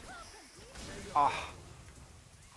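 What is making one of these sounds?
A burst of energy crackles and booms on impact.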